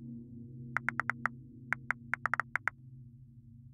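Game menu clicks tick in quick bursts.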